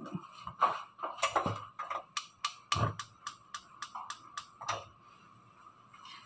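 A hand knocks lightly against a metal pot.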